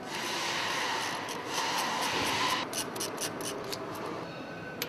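A ratchet wrench clicks quickly as it turns a fitting.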